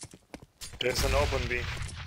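Gunshots ring out close by.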